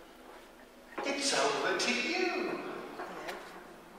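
An elderly man speaks loudly through a microphone.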